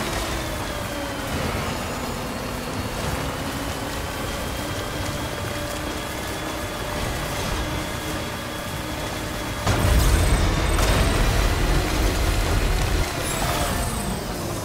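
Tyres rumble over rough, rocky ground.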